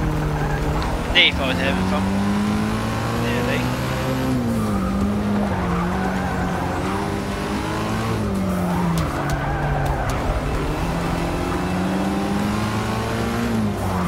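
A racing car engine roars steadily, rising and falling in pitch as the gears shift.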